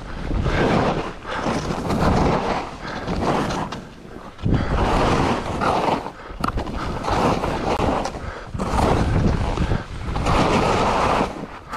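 Skis hiss and scrape through deep powder snow in surging bursts.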